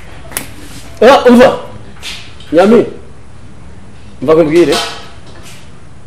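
A man speaks nearby in short, loud bursts.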